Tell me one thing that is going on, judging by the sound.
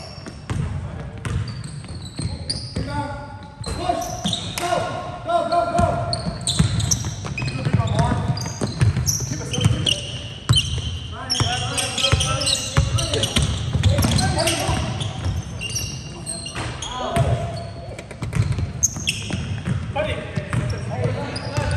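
Young men call out to one another across an echoing gym.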